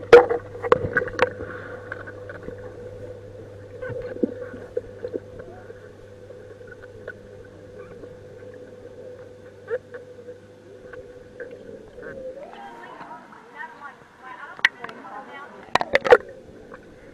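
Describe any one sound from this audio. Water gurgles and bubbles, heard muffled from underwater.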